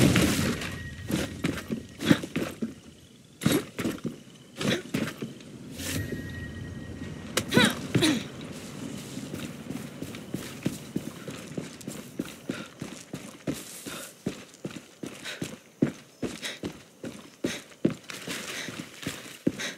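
Footsteps rustle through dry grass and brush.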